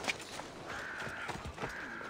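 Footsteps scuff on a stone road.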